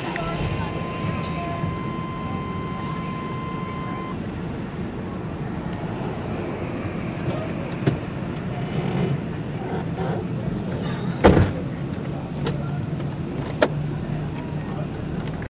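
Traffic hums steadily along a street at night.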